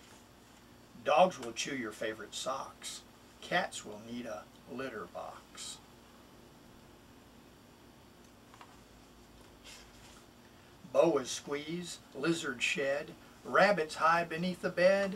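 A middle-aged man reads aloud calmly and close by.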